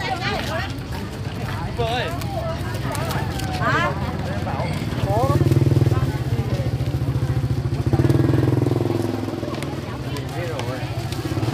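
Many people talk at once outdoors.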